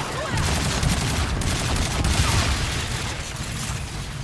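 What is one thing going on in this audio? Heavy gunfire booms rapidly and loudly.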